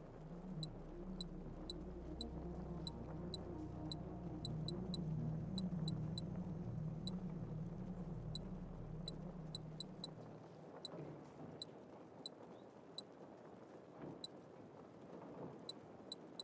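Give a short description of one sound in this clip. Short, high menu clicks tick again and again as selections change.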